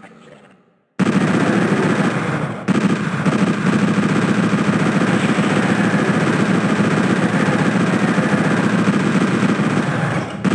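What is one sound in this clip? A rapid-fire gun blasts in a fast, steady stream.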